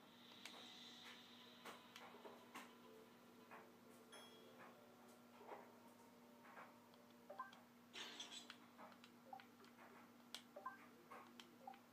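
Short game menu blips sound as selections change.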